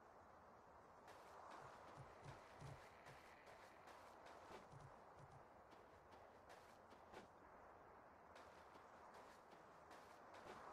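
Footsteps crunch on grass and dirt.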